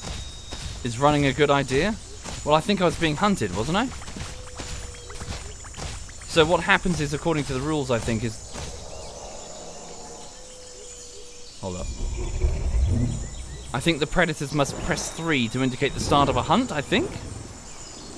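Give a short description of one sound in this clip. A large creature calls out with deep, wavering honks.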